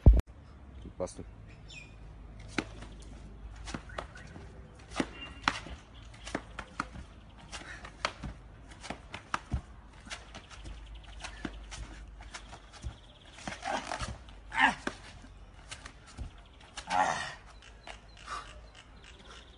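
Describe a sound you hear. Hands and feet slap on a concrete floor during quick exercises.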